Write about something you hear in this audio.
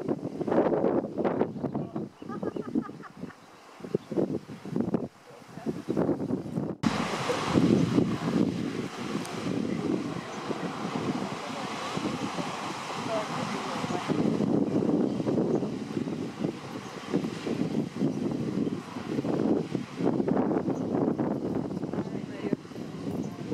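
Waves crash and roar against rocks close by.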